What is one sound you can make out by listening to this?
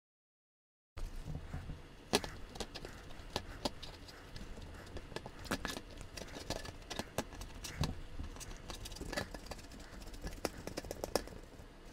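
A gloved hand scrapes and crackles gritty debris off a metal toy.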